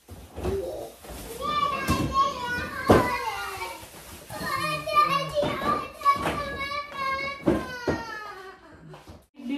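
A young girl squeals and shouts excitedly nearby.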